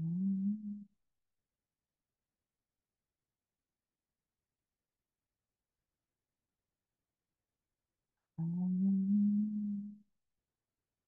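An elderly woman hums a low steady note close to a microphone.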